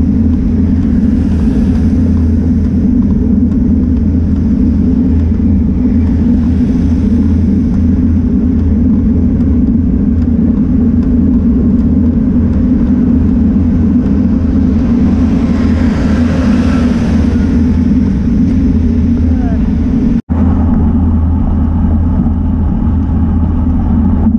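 Wind buffets loudly in a steady low roar.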